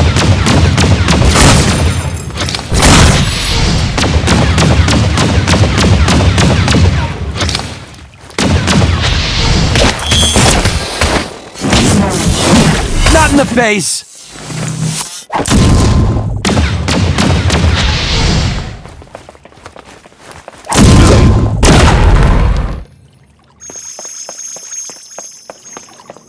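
Blasters fire in rapid bursts of shots.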